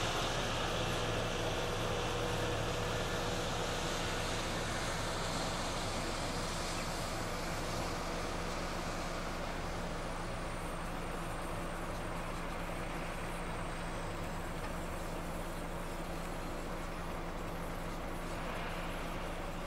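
A lift's engine hums steadily nearby.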